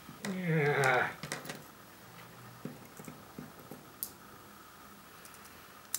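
Pliers snip and click.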